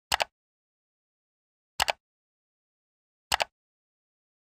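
Mouse clicks sound three times.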